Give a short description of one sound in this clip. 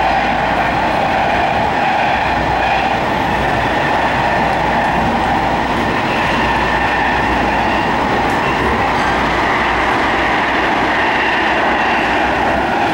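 A subway train rumbles and roars loudly along the tracks.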